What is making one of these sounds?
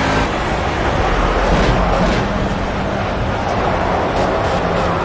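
Tyres rumble over the track.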